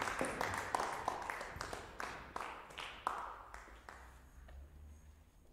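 An audience applauds in a large echoing hall, and the clapping fades away.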